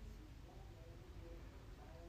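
A soft eraser rubs on paper.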